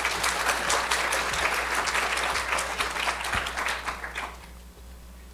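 An audience applauds in a large room, then the clapping dies away.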